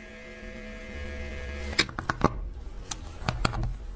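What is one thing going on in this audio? A metal watch case clicks as it is handled.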